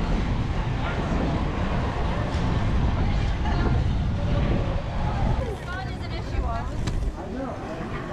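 Inline skate wheels roll and rumble on asphalt.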